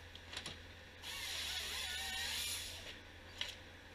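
A chainsaw blade whines as it cuts through a log.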